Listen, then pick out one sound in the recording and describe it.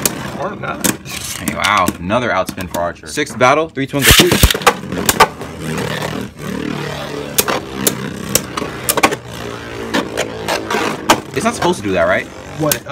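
Spinning tops whir and scrape across a plastic dish.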